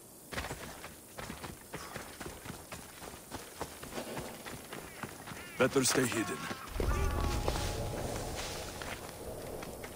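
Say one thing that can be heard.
Footsteps run over stone and gravel.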